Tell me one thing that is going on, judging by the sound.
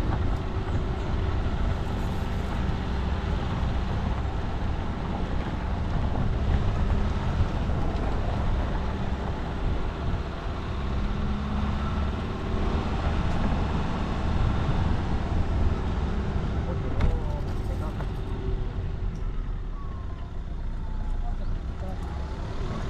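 A vehicle engine rumbles steadily while driving slowly.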